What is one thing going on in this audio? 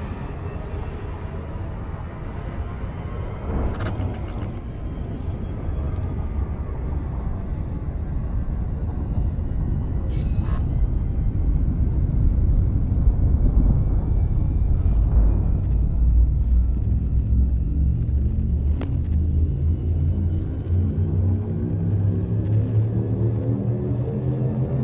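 A deep spaceship engine rumbles steadily and slowly grows louder.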